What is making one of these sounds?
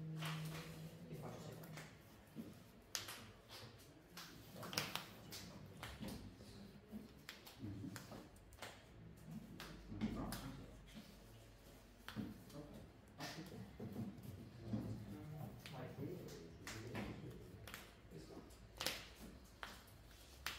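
Cards riffle and rustle as a hand shuffles them.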